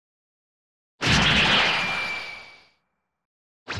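A spaceship whooshes past and fades away.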